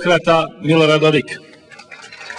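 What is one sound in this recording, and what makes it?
An older man speaks loudly through a microphone.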